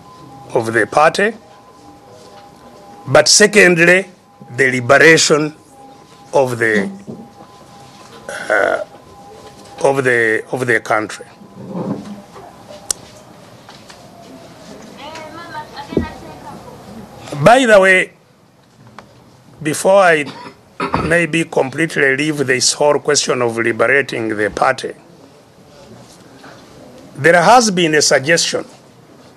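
An elderly man speaks with emphasis in short bursts, close to a microphone.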